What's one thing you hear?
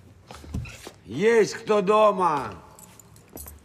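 An older man exclaims loudly in a rising and falling voice.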